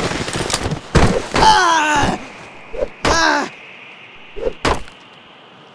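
A wooden plank whooshes and thuds against a body.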